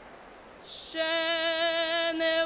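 A boy sings steadily into a microphone, carried over loudspeakers in a large open arena.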